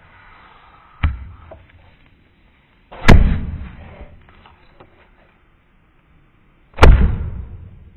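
A hand thumps down on paper on a hard surface.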